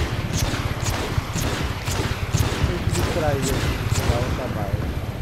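Rockets fire in quick bursts.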